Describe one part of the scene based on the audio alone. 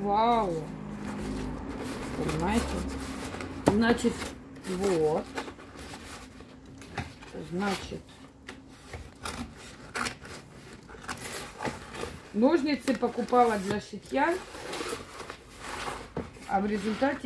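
Cardboard scrapes and rustles as it is handled.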